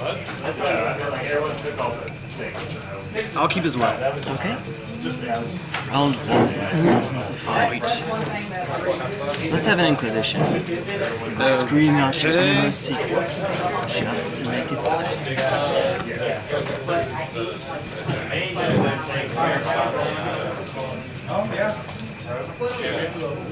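Playing cards are shuffled and riffled in hands.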